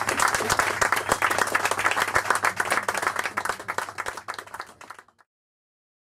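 A saxophone plays a lively jazz line.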